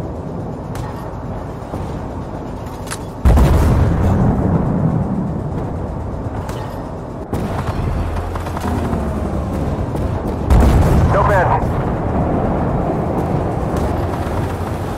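A tank engine rumbles steadily throughout.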